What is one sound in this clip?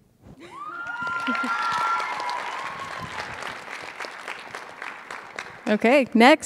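An audience claps and cheers in a large echoing hall.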